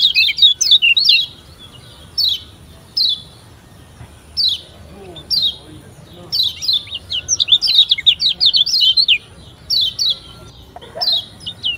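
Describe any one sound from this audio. A small songbird chirps in quick, high bursts, close by.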